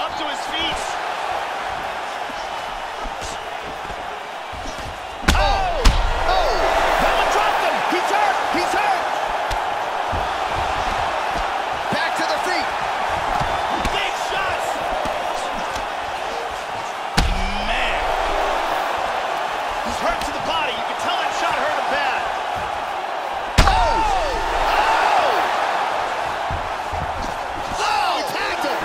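A crowd murmurs and cheers steadily in a large arena, rising after big hits.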